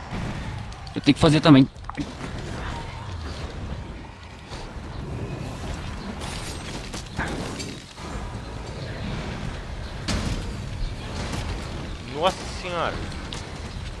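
A huge beast roars loudly.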